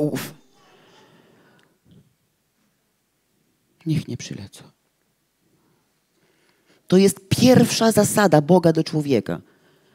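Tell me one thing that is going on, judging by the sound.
A woman speaks with animation through a microphone.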